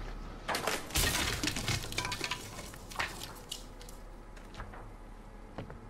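Wooden boards knock and clatter.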